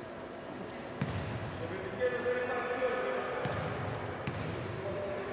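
A basketball bounces on a wooden court in an echoing hall.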